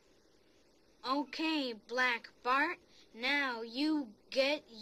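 A young boy speaks calmly and closely.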